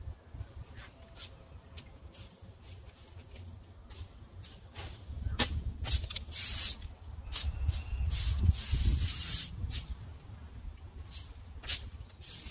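A broom sweeps dirt on a concrete sidewalk with quick scratchy strokes.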